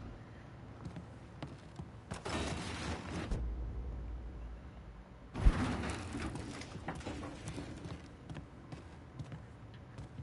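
Footsteps thud slowly across a floor.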